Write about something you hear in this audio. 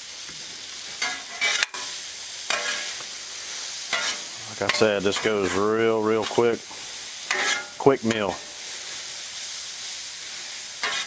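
Metal spatulas scrape and clack on a hot griddle.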